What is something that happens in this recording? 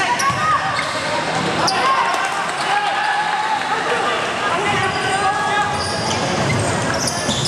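Young players shout across a large echoing gym.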